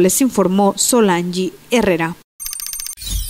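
A woman speaks clearly through a microphone.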